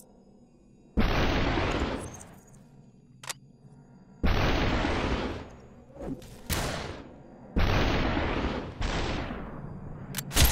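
Gunshots from a pistol fire loudly, one after another.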